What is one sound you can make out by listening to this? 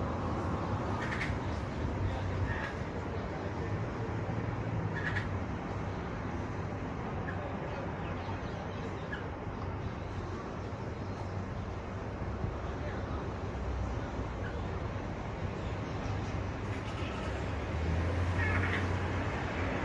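A small bird chirps in short, sparse calls.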